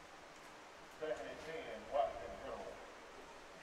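Young men shout from a distance outdoors.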